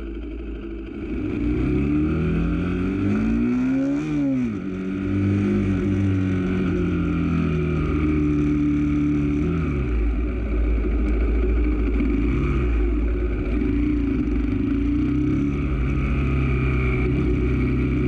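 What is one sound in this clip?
A motorcycle engine revs up and rises and falls in pitch as it rides and shifts gears.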